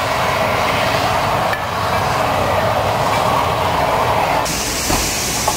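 Steam hisses loudly from a locomotive.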